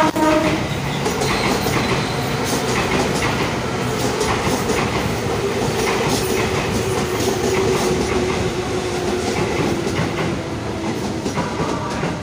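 A commuter train rumbles and squeals past close by.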